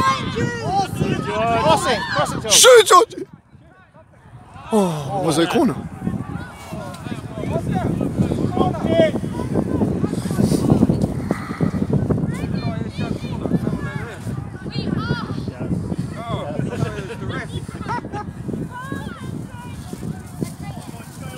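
Children shout and cheer excitedly nearby outdoors.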